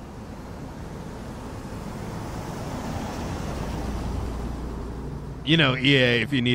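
A car drives past along a street.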